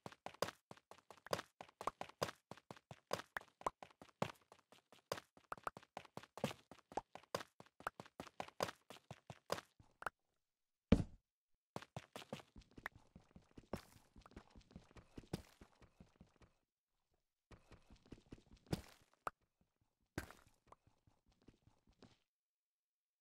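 A pickaxe taps rapidly against stone, breaking blocks one after another.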